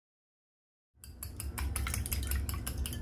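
A fork whisks eggs in a bowl with quick clinks.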